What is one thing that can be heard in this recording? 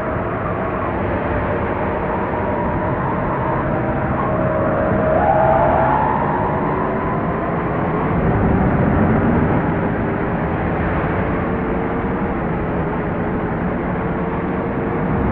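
A bus engine rumbles steadily as the bus drives along.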